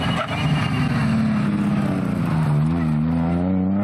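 A rally car passes close by and pulls away at full throttle.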